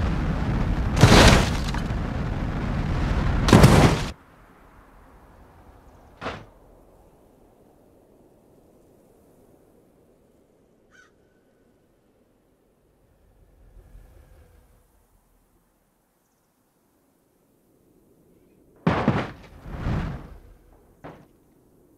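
A car slams into rock with loud crunching crashes.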